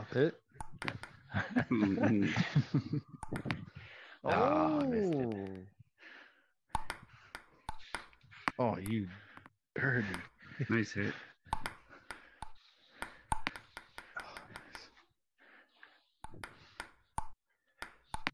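A table tennis ball clicks sharply as it is hit back and forth and bounces on the table.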